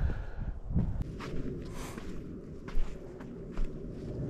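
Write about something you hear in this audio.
Footsteps crunch on a rocky trail.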